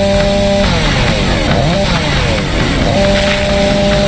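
A chainsaw engine revs up and down.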